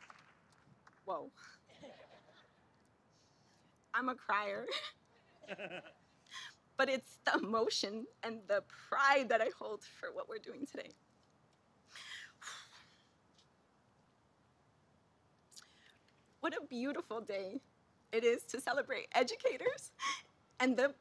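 A young woman speaks with feeling into a microphone, pausing often.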